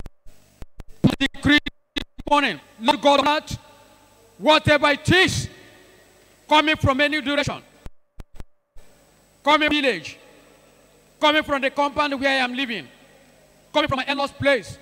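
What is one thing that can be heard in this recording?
A man preaches with animation through a microphone in a large echoing hall.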